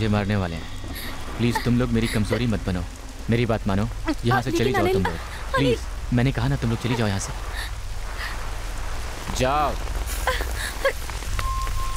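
A young man and a young woman talk with animation, close by.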